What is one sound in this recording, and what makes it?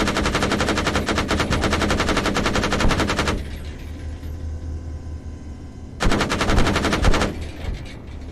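Heavy cannons fire in rapid, rattling bursts.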